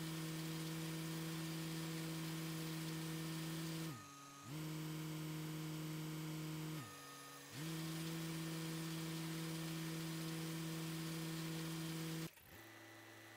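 A tractor engine hums steadily, briefly dipping in pitch twice.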